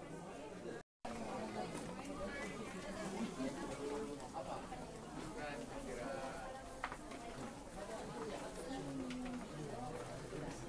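A crowd murmurs and shuffles along a corridor.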